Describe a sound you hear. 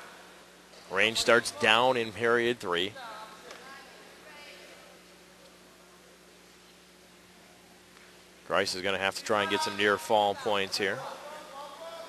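Spectators shout loudly in bursts in an echoing hall.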